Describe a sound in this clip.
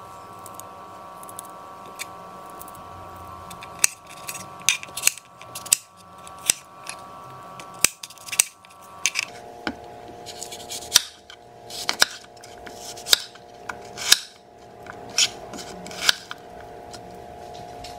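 A knife knocks sharply against a cutting board while chopping.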